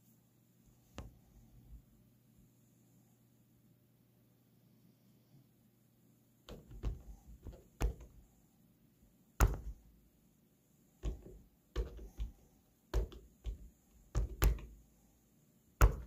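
Fingers tap and click the buttons of a device.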